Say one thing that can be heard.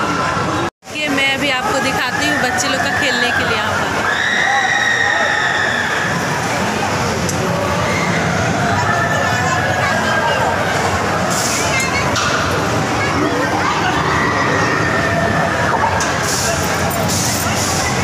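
A crowd of people chatters loudly in a busy, echoing hall.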